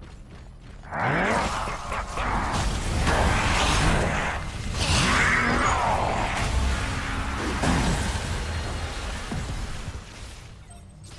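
Game weapons blast and crackle in a loud fight.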